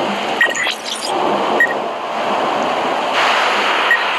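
A bright magical chime rings out as an effect bursts.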